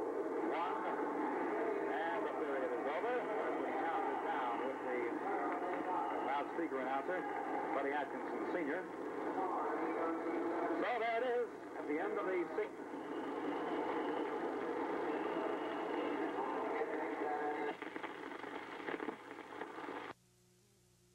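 A crowd cheers and roars in a large echoing arena.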